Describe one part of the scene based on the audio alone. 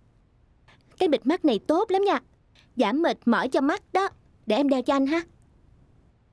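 A young woman speaks cheerfully and playfully close by.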